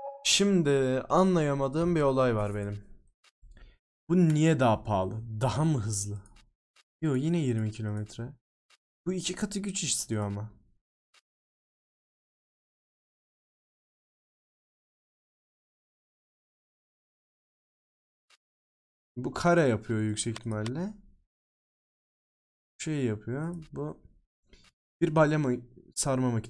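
A young man talks with animation close to a microphone, in short bursts with pauses.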